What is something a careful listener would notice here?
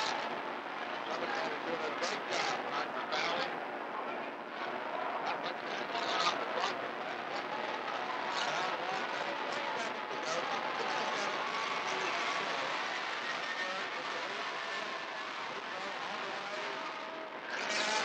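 A large crowd chatters and cheers in an echoing gym.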